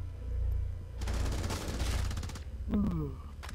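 A rapid burst of gunfire rings out loudly.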